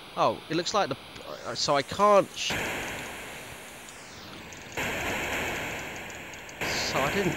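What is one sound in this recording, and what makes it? Electronic game sound effects chirp in quick sweeping zaps.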